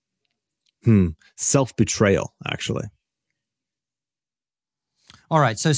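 A man speaks calmly through a microphone over an online call.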